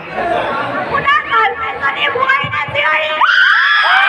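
A girl speaks excitedly into a microphone.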